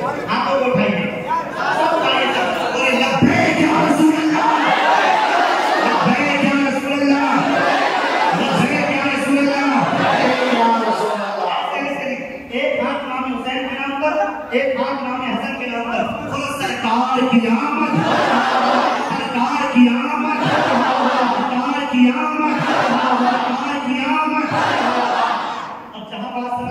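A man sings and recites passionately into a microphone, heard through loudspeakers.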